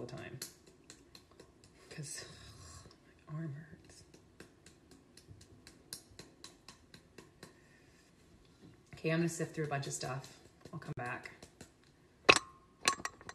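A sieve taps repeatedly against a bowl in light, quick clicks.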